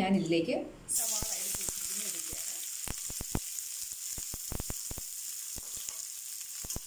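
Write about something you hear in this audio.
Onions sizzle in hot oil.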